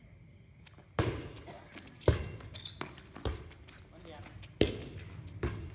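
A volleyball is hit with sharp slaps outdoors.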